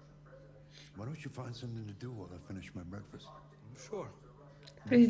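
A man speaks briefly in a low, calm voice.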